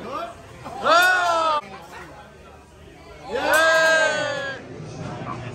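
A group of adults laughs and cheers loudly nearby.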